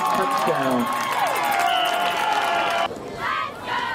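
A crowd cheers loudly outdoors.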